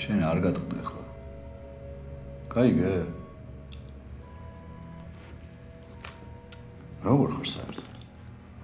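A middle-aged man speaks in a low, calm voice.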